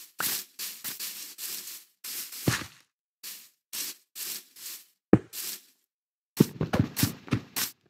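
Stone blocks thud softly as they are placed.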